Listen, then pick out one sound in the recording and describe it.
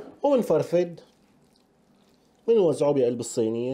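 A hand squishes and spreads soft, wet paste.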